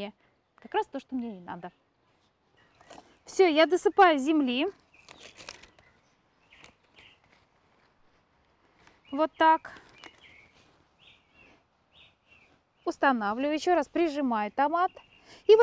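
A middle-aged woman speaks calmly and clearly, close by.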